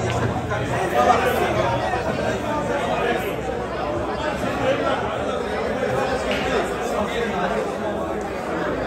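A crowd of people chatters steadily all around.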